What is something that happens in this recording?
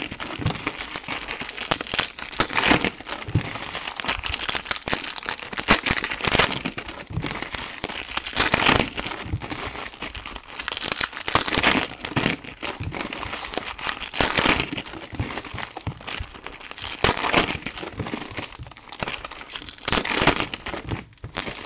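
Plastic wrappers crinkle and rustle close by as packs are torn open.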